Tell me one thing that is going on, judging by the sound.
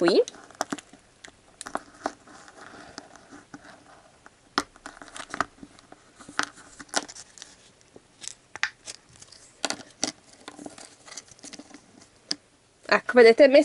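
A plastic capsule clicks and taps.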